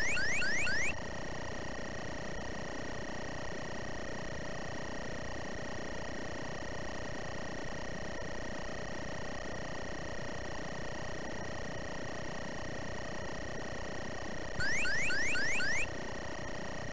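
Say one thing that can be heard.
A warning alarm chirps in quick rising bleeps.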